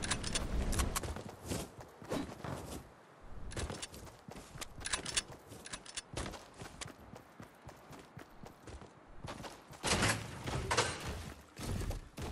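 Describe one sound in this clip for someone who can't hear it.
Quick footsteps run over the ground.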